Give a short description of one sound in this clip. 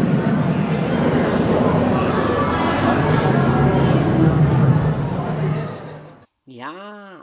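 A dinosaur model roars loudly in an echoing hall.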